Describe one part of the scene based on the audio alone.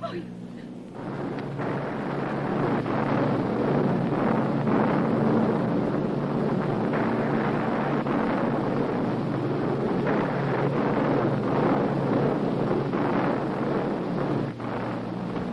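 Strong wind roars and rushes.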